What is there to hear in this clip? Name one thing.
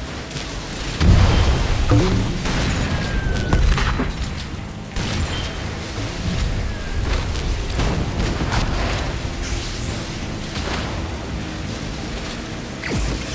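Cannon shots and explosions boom in bursts.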